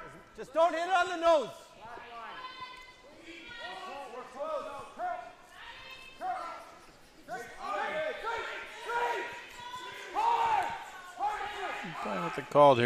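Men shout loudly and urgently.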